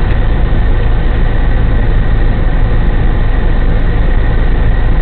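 A fire engine idles with a steady, loud rumble close by.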